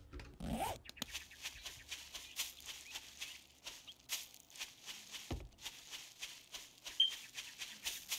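Footsteps rustle through tall grass and bushes at a steady walking pace.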